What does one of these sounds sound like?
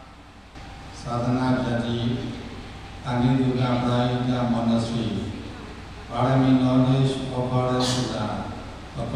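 An elderly man speaks slowly into a microphone, heard through loudspeakers.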